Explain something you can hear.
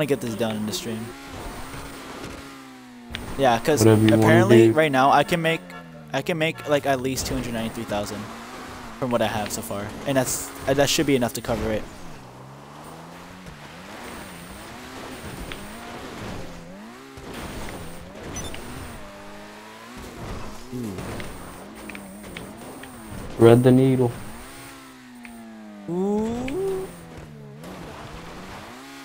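A car engine revs up and down as it climbs over rough ground.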